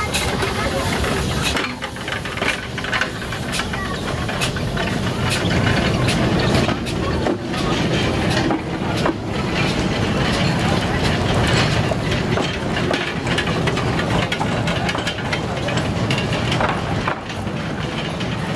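A small train rumbles slowly along the rails.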